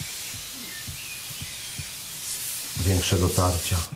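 An aerosol can sprays with a hiss.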